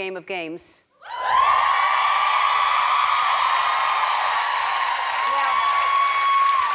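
A large crowd claps and applauds.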